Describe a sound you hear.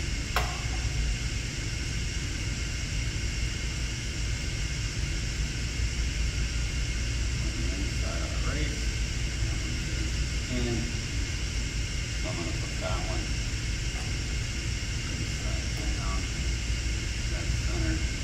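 Metal parts clink and scrape as they are handled.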